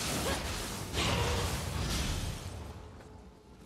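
Swords clash and strike in a noisy fight.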